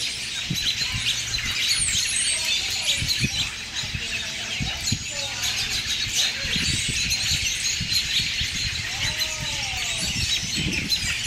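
Wind rustles the leaves of a tree outdoors.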